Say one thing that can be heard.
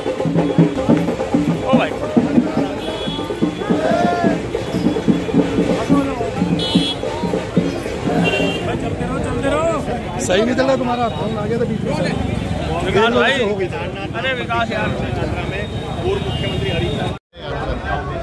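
A crowd chants and shouts outdoors in a busy street.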